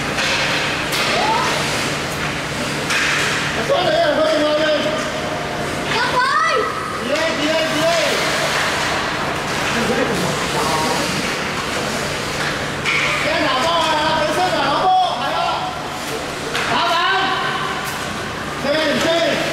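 Children shout excitedly in a large echoing hall.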